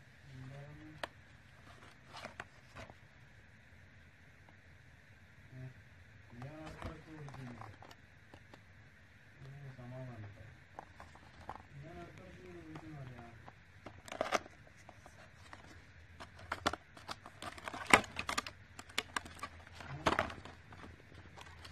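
Cardboard boxes tap and scrape under a hand.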